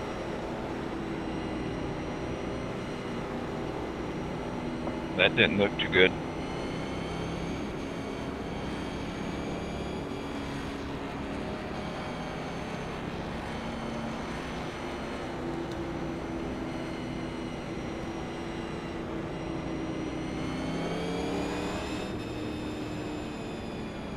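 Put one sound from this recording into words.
A race car engine roars steadily, rising and falling in pitch as it speeds up and slows.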